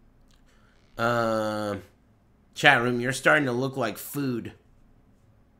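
A man speaks loudly and with animation into a microphone.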